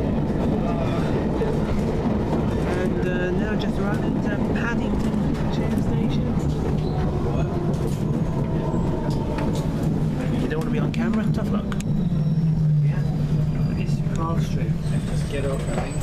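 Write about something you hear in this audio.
A train rumbles along and slows to a stop.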